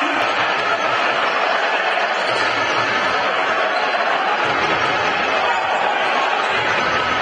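A crowd murmurs and cheers in an echoing indoor arena.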